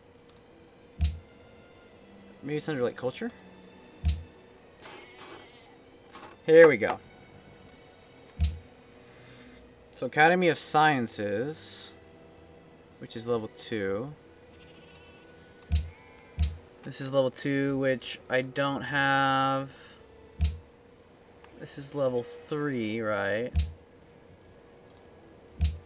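A computer mouse clicks sharply now and then.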